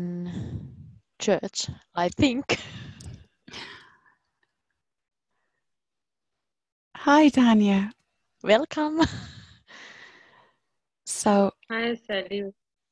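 A woman speaks clearly and calmly through a microphone on an online call.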